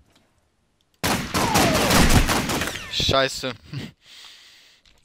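Gunshots ring out at close range.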